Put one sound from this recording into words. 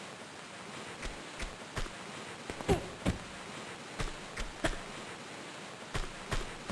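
Quick footsteps thud on a wooden floor.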